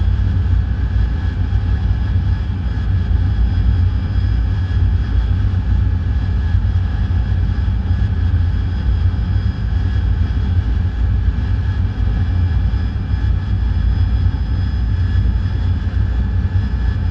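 A jet engine roars steadily inside a cockpit, with a deep rumble and a high whine.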